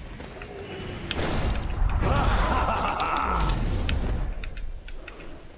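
Weapons strike with sharp hits during a fight.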